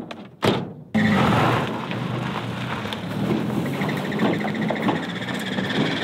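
A pickup truck engine runs as the truck drives away.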